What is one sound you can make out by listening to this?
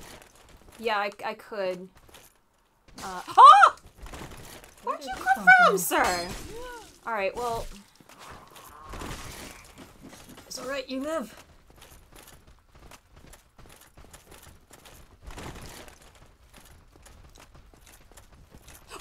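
Armoured footsteps clatter on stone.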